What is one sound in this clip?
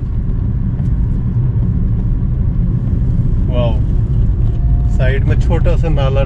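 A car engine rumbles steadily while driving along a rough road.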